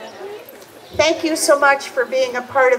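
A choir of girls sings together.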